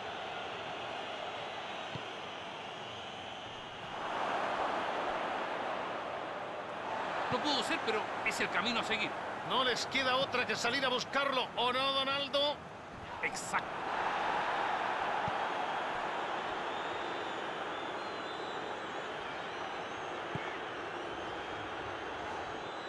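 A stadium crowd roars steadily, swelling and fading in waves.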